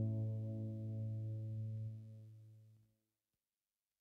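A band plays a sustained chord that rings out and fades in a large echoing room.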